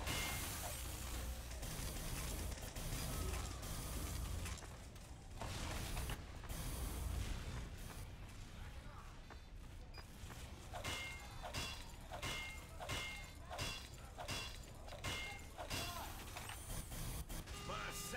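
Game gunfire and explosions crackle.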